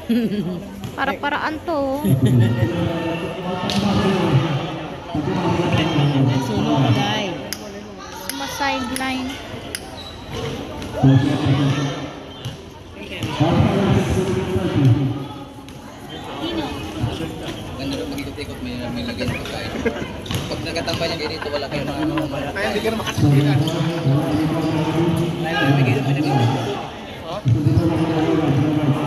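Young women chat with animation close by.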